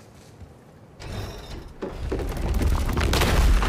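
A heavy wooden mechanism grinds and rumbles loudly.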